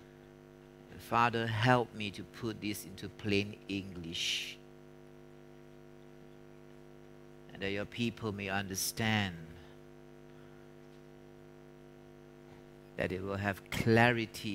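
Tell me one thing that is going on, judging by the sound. A man speaks calmly in short bursts with long pauses.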